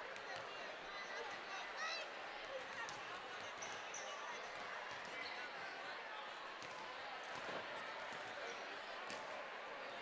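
Basketballs bounce on a hardwood floor in a large echoing gym.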